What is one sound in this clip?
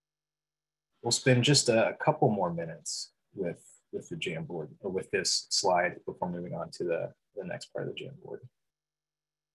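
A young man speaks calmly into a microphone over an online call.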